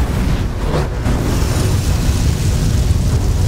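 An energy blast bursts with a crackling whoosh.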